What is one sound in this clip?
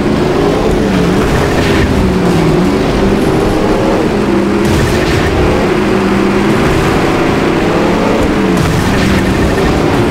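Cars crash and bang into each other with metal thuds.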